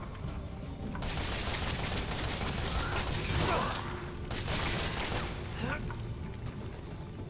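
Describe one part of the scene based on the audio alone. A video game gun fires bursts of shots.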